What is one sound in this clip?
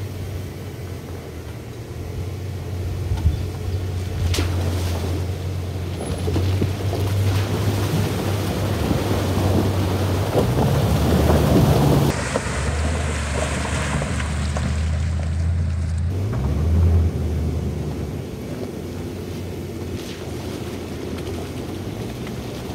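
A truck engine rumbles low and steady as the truck drives slowly.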